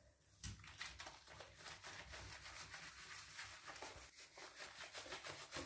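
Wet hands rub and squelch through a small dog's soapy fur.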